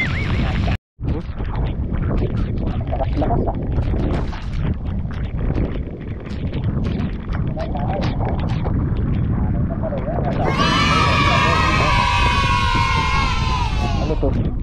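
Sea spray splashes against an outrigger boat.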